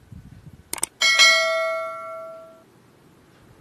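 A bell chimes brightly and rings out.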